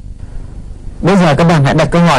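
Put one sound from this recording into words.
A man speaks clearly and calmly, close to a microphone.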